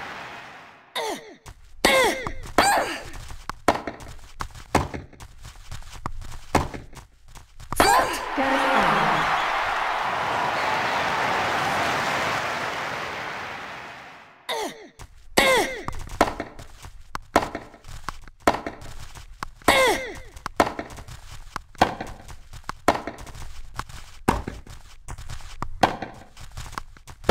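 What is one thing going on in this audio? A tennis racket strikes a ball again and again in a rally.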